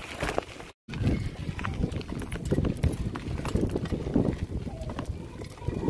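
Bicycle tyres crunch and bump over a dirt road.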